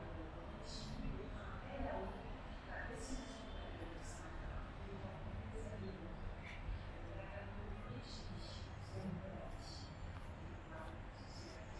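A metro train rumbles across a bridge in the distance.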